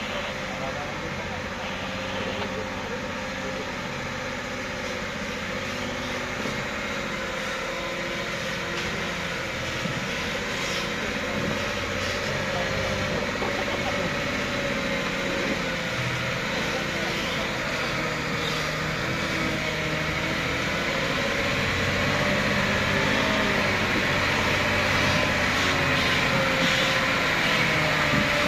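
Truck tyres squelch and crunch through mud.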